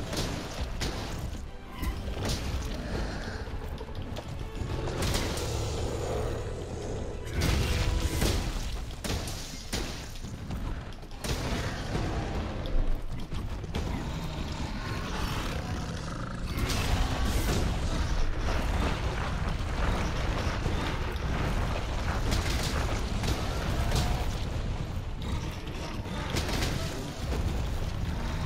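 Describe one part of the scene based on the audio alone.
A huge monster stomps and roars.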